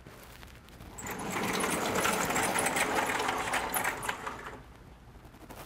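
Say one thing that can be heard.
A sliding blackboard rumbles as it is pushed up.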